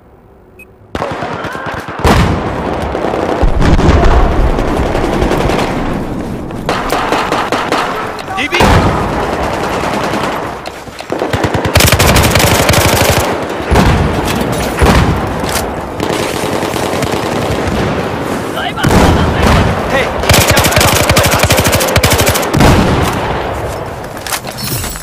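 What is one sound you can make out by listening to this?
Rapid gunfire crackles and booms.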